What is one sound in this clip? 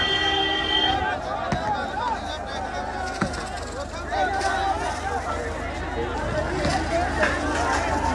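A large crowd of men shouts and clamours outdoors.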